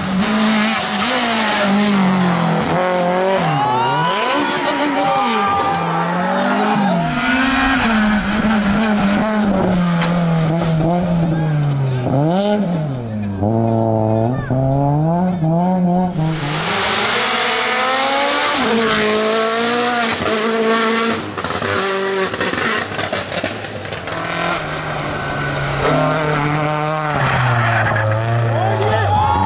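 A rally car engine roars loudly, revving up and down through the gears.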